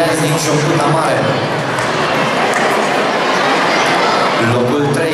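A crowd of children and adults chatters loudly in a large, echoing hall.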